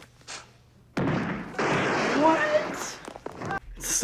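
A young woman cries out in shock.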